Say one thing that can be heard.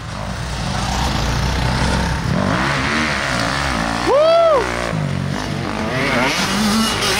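Dirt bike engines rev and whine nearby.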